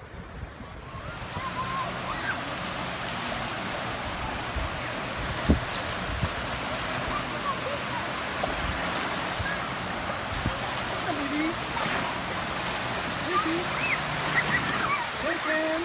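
Small waves wash onto the shore.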